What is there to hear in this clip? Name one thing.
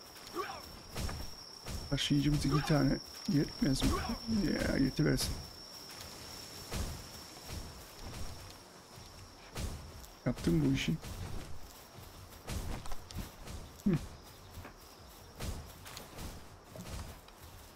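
Footsteps tread steadily over stone and grass.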